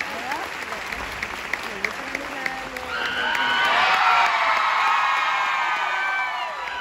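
A live band plays music in a large echoing hall.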